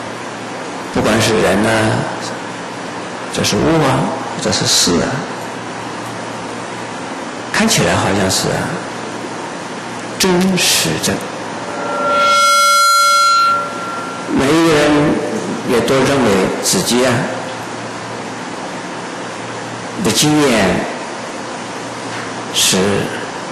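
An elderly man speaks calmly into a microphone in short phrases with pauses.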